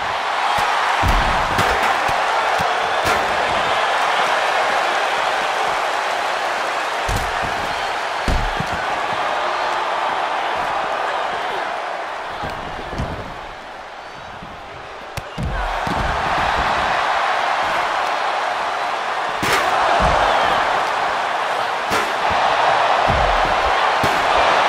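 Heavy thuds of bodies slam onto a wrestling mat.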